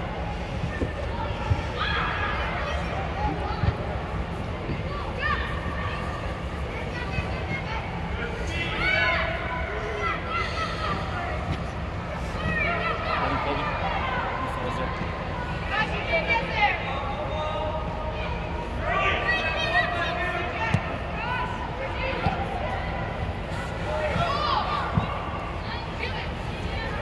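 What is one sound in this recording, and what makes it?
Children shout across a large echoing indoor pitch.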